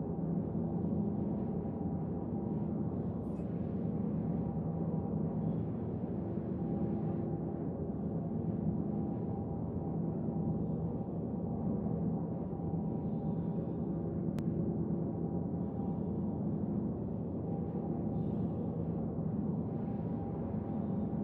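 A deep engine hum drones steadily.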